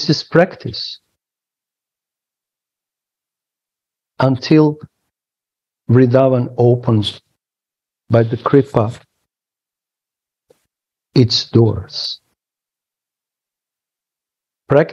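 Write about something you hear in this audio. A middle-aged man speaks calmly in short phrases with pauses, heard over an online call.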